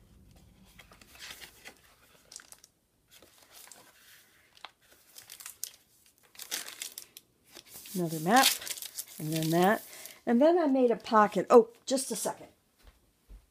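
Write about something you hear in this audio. Stiff paper pages rustle as they are turned.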